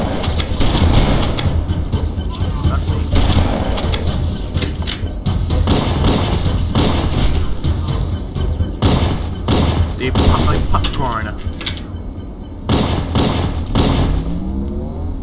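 A shotgun fires in loud blasts.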